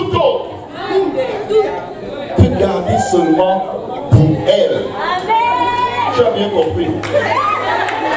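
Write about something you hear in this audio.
A man speaks through a microphone into a large echoing hall.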